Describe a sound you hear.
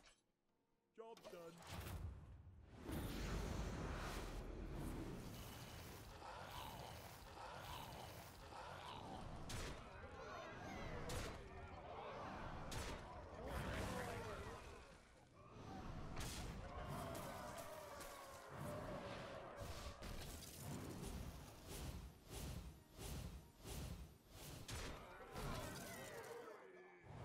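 Video game combat effects crash, thud and burst with magic blasts.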